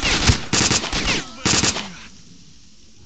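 A rifle fires several loud shots that ring out.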